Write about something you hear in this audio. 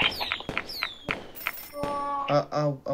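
Bright electronic chimes and whooshes ring out in quick succession.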